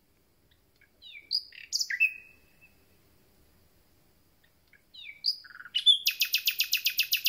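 A small songbird sings close by in bursts of whistles and rapid trills.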